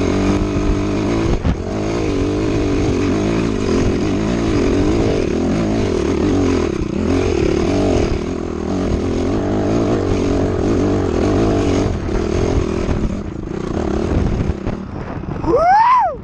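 A dirt bike engine roars steadily at close range.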